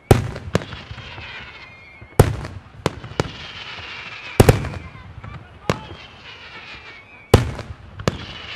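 Fireworks burst with loud booming bangs outdoors.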